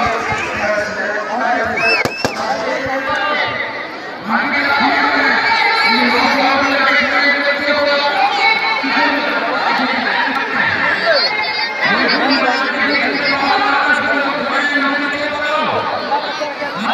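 A large outdoor crowd chatters, cheers and shouts loudly.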